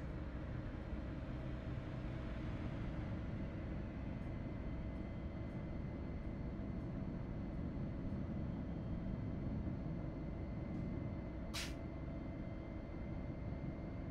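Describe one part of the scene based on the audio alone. Tyres roll on the road with a steady hum.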